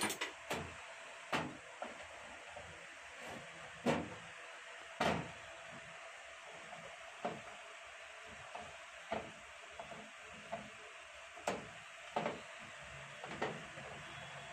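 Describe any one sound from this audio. Metal plates clink and clatter as they are handled.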